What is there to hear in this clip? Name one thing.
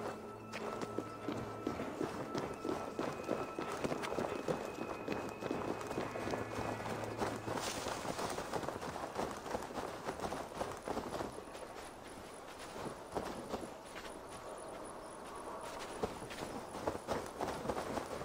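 Footsteps run over stone and grass.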